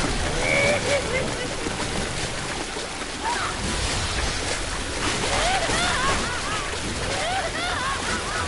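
A blast bursts with a loud rushing spray.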